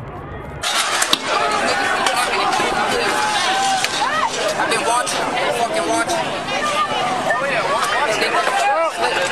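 A crowd of young men shouts angrily close by, outdoors.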